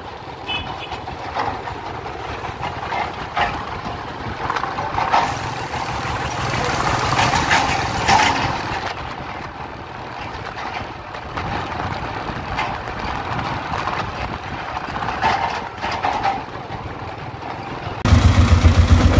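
A small truck engine chugs along the street nearby.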